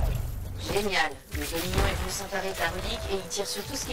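Gunfire and blasts crack and boom in rapid bursts.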